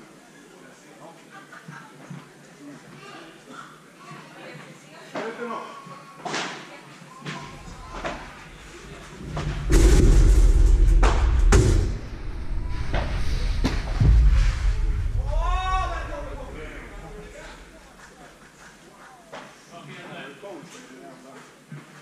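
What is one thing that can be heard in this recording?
Men talk and call out across a large echoing hall.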